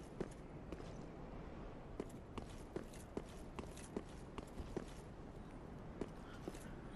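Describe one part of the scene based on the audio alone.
Armored footsteps clank steadily on stone.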